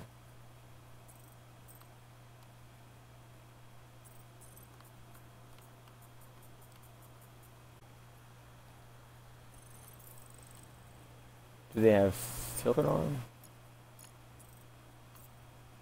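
Soft electronic menu ticks sound now and then.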